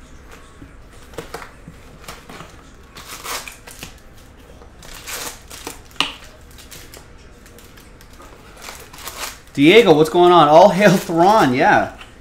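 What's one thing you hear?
Card packs rustle and crinkle as hands handle them.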